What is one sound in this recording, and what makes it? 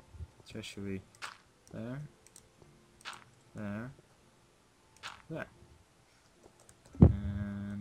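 Blocks land with soft dull thuds.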